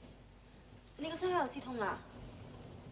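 A young woman speaks with surprise, close by.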